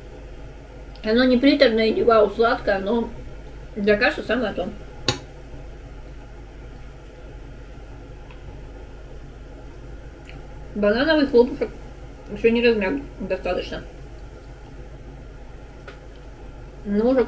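A middle-aged woman talks calmly, close by.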